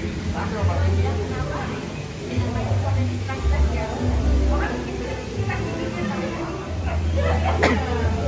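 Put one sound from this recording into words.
Several adults chat in low voices nearby.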